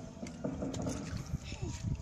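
A fish splashes into shallow water.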